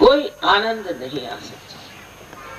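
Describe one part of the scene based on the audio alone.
An elderly woman speaks calmly into a microphone, heard through a loudspeaker.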